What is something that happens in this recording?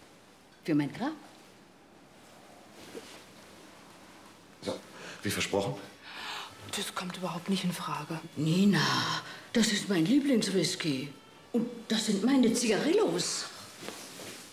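An older woman speaks nearby with animation.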